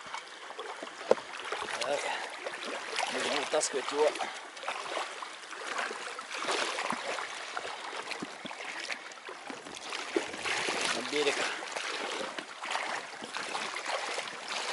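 A fishing reel clicks and whirs as its handle is cranked.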